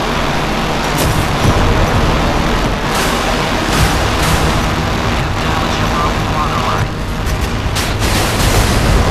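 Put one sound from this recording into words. Naval guns fire with heavy booms.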